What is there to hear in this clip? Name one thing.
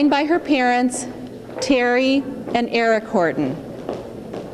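A woman speaks loudly through a microphone and loudspeakers in an echoing hall.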